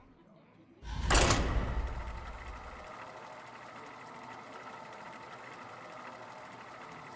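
A loud whoosh starts a steady mechanical hum.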